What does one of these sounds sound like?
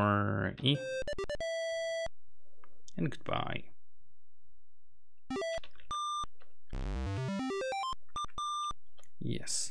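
Short electronic beeps and tones play from a computer game.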